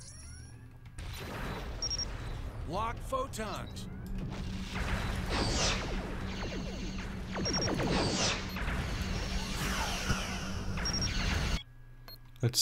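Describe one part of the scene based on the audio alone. A spaceship engine roars steadily.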